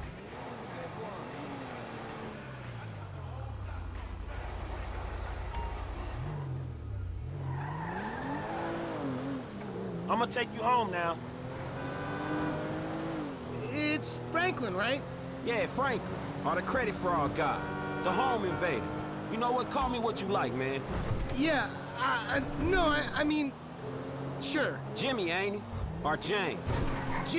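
A car engine hums and revs as the car pulls away and speeds along a road.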